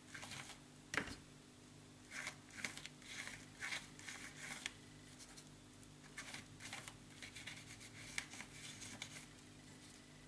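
A sponge dabs wet paint in short, quick bursts.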